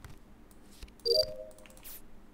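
A short electronic beep chimes as a card is accepted.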